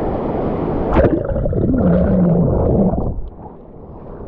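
Underwater, the sound turns muffled and bubbling.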